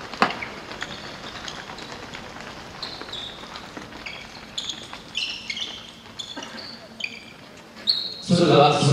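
Sports shoes squeak and patter on a hard court in a large echoing hall.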